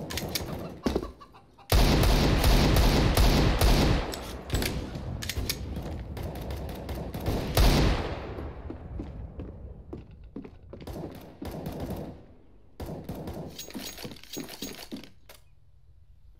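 Footsteps run quickly over hard floors.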